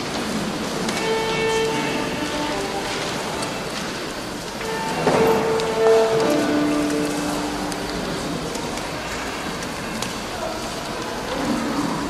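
A small string ensemble begins to play softly in a large echoing hall.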